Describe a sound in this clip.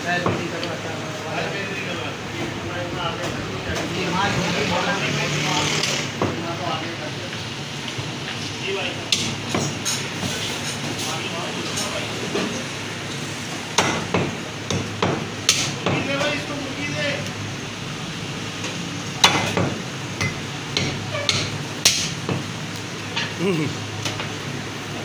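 A cleaver chops meat on a wooden block with sharp thuds.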